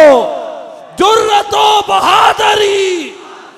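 A crowd chants loudly together.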